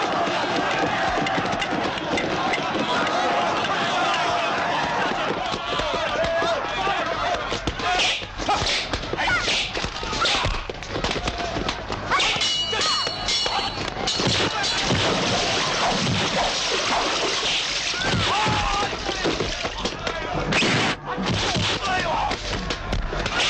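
A crowd of men shouts and yells in a scuffle.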